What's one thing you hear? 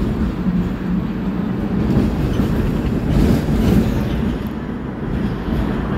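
A tram's engine rumbles steadily as it rolls along.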